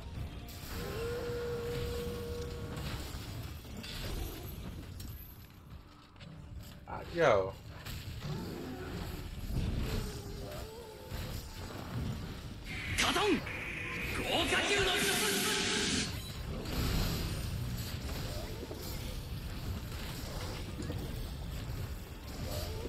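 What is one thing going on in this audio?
Blades clang and slash in rapid hits.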